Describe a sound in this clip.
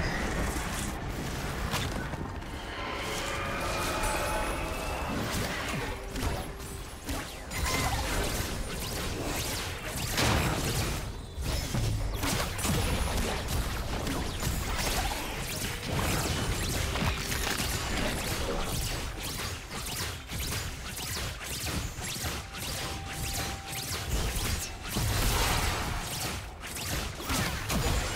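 Spell blasts and weapon strikes crackle and clash in a fast fight.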